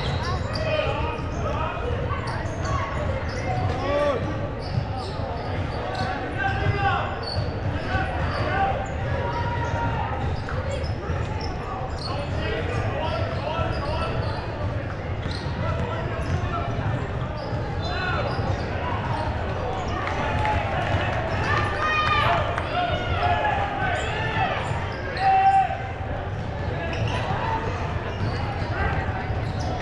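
Spectators chatter throughout a large echoing hall.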